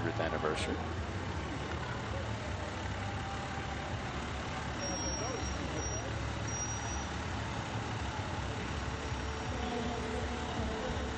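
Fire engine motors rumble as the trucks roll slowly past.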